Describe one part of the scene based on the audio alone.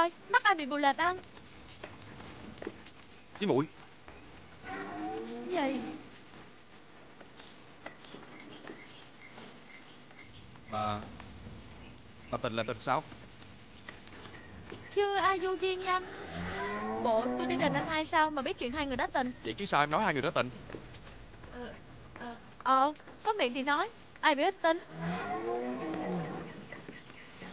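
A young woman speaks sharply and with animation, close by.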